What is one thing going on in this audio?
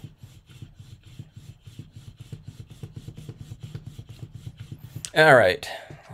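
A rubber roller rolls back and forth over paper in a quick, steady rhythm.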